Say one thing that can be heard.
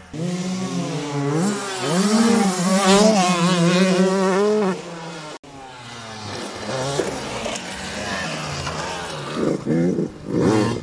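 Dirt bike engines rev loudly and rise and fall in pitch.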